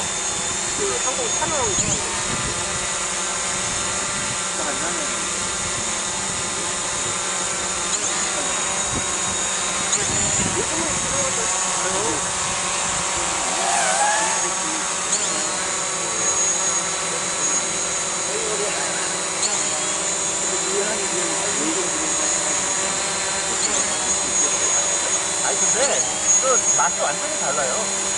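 A drone hovers nearby with a steady, high buzzing whine from its propellers.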